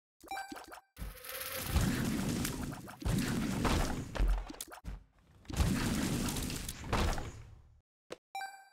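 Video game blasts and splatters crackle in loud bursts.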